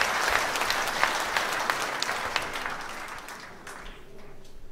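An audience applauds in a large hall, and the applause fades away.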